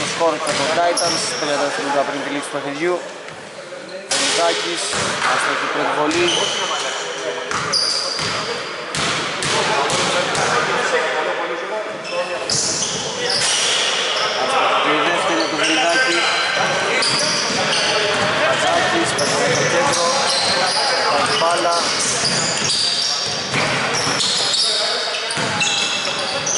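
Adult men shout and call out to each other in an echoing gym.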